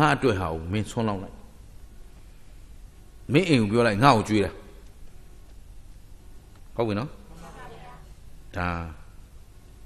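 A middle-aged man speaks with animation into a microphone, in short bursts.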